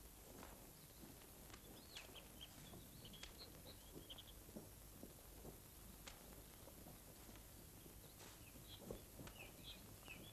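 Paper rustles as a magazine is handled close by.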